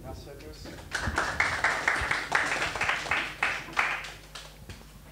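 An audience claps and applauds in a room.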